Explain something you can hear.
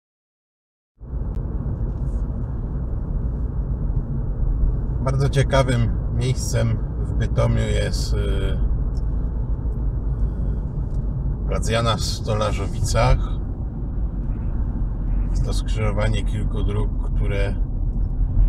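A car engine hums steadily with a low rumble of tyres on the road, heard from inside the car.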